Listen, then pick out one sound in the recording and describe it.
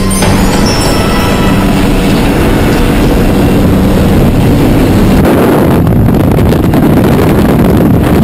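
An aircraft engine roars loudly.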